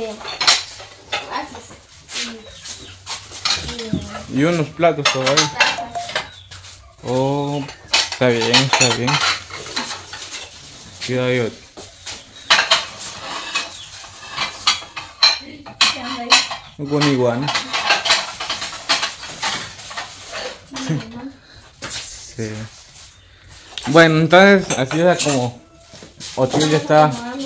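Dishes clatter and clink as they are handled.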